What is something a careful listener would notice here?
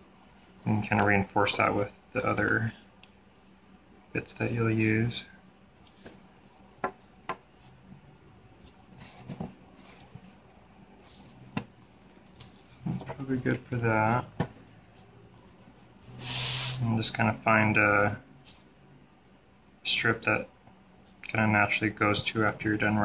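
Stiff cords rub and click softly as hands twist and weave them.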